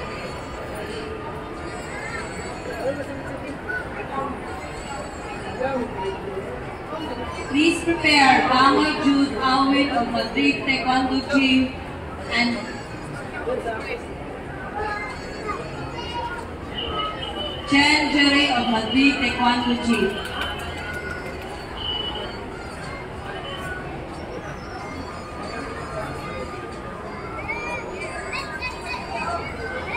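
A crowd of children chatters throughout a large, echoing hall.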